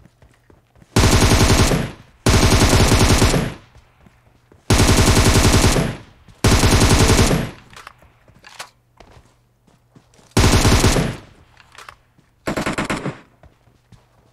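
A rifle fires in loud rapid bursts, close by.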